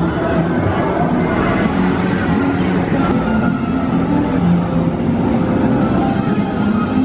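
A roller coaster train rumbles along its track at a distance.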